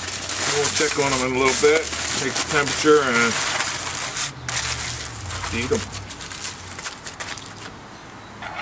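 Aluminium foil crinkles and rustles as it is folded.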